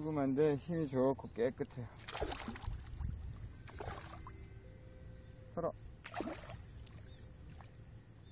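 A hooked fish splashes in shallow water.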